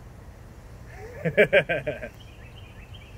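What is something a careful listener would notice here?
A young woman laughs briefly.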